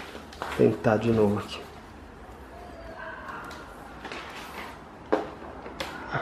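A cardboard box rustles and scrapes as it is handled.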